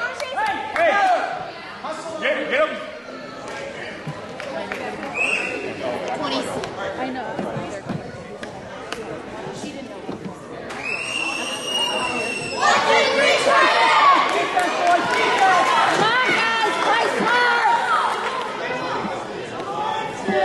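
A crowd of parents and children chatters and calls out in a large echoing gym.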